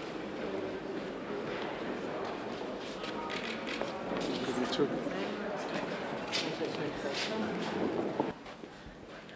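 People chatter and murmur nearby.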